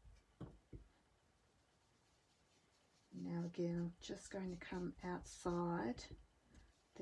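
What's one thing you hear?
Fingers rub and press softly on paper.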